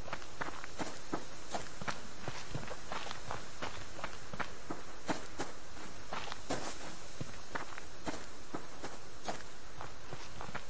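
Footsteps crunch through dry grass at a steady walking pace.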